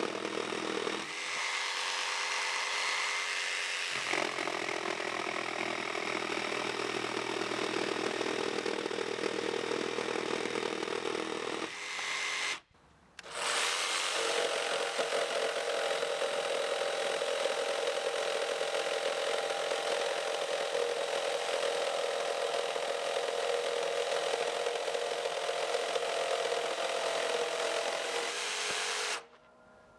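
A jigsaw buzzes steadily as it cuts through a thick wooden beam.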